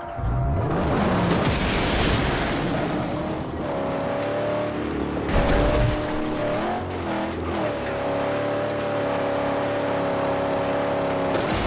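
A car engine roars steadily, shifting pitch as the car speeds up and slows down.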